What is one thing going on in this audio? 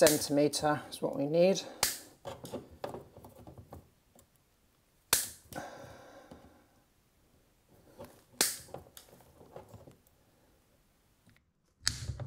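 Wire cutters snip through cable.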